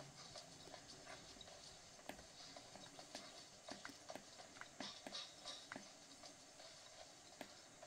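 Buttons on a handheld game console click under the thumbs.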